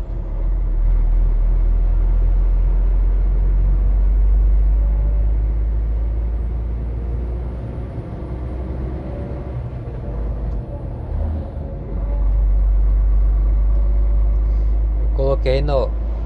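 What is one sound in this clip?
A vehicle engine rumbles steadily from inside as it drives along a road.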